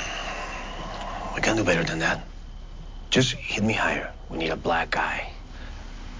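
A man speaks tensely, close by.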